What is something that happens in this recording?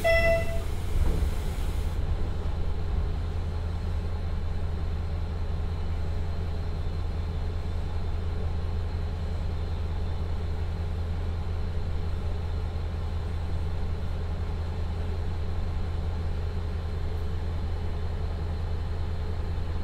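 A diesel railcar engine idles with a low, steady rumble.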